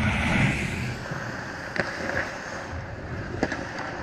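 Hockey sticks clack and a puck knocks on the ice nearby.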